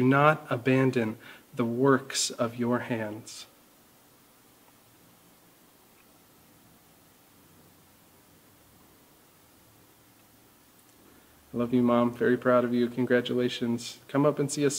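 A man speaks calmly and close to a microphone, pausing in the middle.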